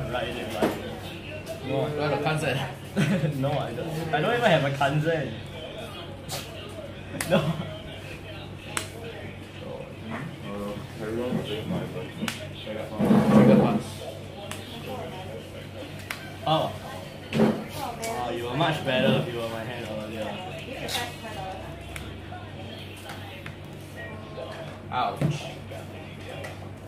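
Playing cards rustle and tap softly onto a table.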